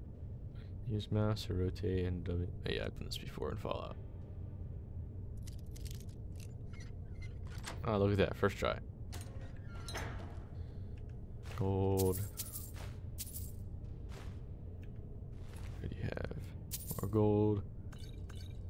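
A young man talks with animation close to a microphone.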